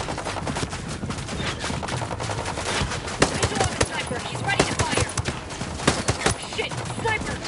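A rifle fires rapid gunshots.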